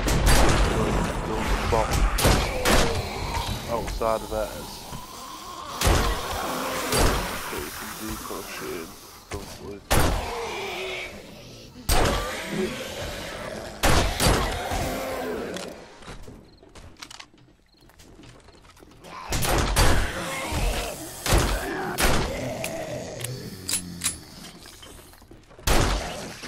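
Zombies growl and groan nearby.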